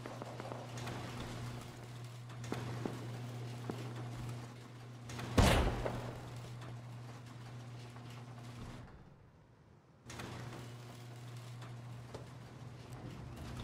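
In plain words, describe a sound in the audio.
Footsteps clank on a metal floor.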